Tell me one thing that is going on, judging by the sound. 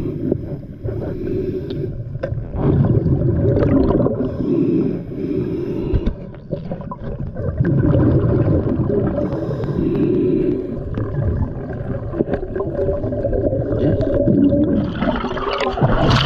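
A diver's breath bubbles and rumbles loudly underwater in repeated bursts.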